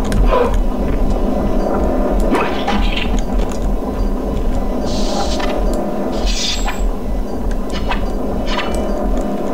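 A small drone's propellers whir steadily.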